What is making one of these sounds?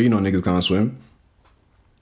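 A man speaks close to a microphone.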